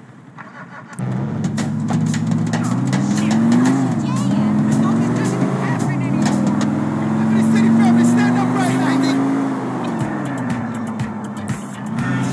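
A car engine starts and revs as the car drives off.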